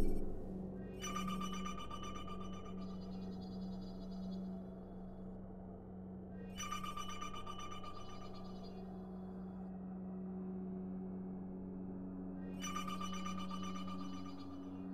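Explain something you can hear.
Short electronic chimes ring out a few times, each with a light shimmering tail.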